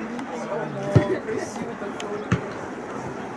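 A football thumps when kicked.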